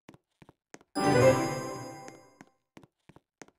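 A bright celebratory burst rings out and fades.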